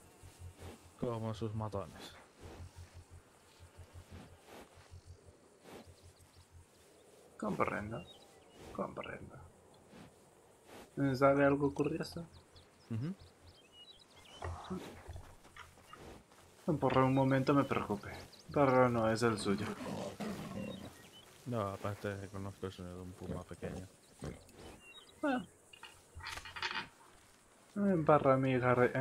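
Adult men talk calmly back and forth, close by, outdoors.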